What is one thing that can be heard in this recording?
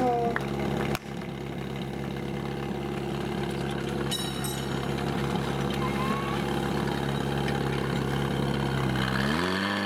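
A pump engine runs loudly with a steady drone, then revs up at the end.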